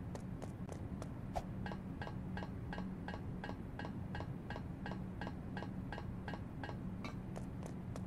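Footsteps clank quickly and evenly on a metal ladder.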